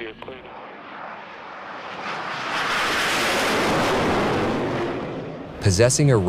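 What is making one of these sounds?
A jet aircraft roars overhead, growing louder and then fading.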